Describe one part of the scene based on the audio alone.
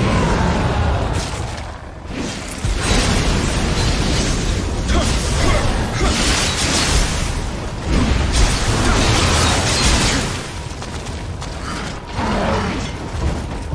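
Monsters roar and growl loudly.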